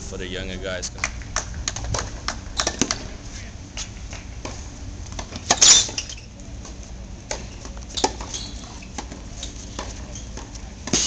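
Tennis balls pop off rackets in a steady rally.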